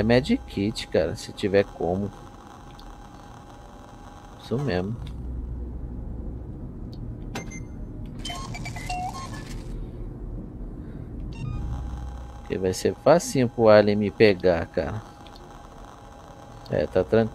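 Soft electronic menu tones chirp and beep.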